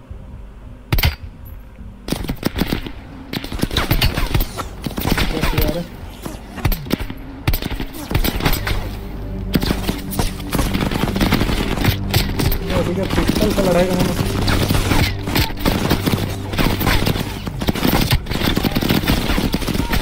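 Gunshots ring out in rapid, loud bursts.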